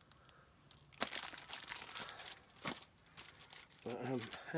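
A plastic wrapper crinkles and rustles.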